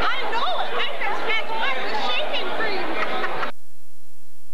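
A crowd of people chatters with animation nearby.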